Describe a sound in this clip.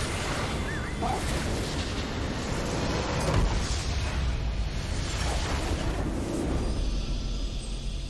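Game battle effects blast and crackle loudly.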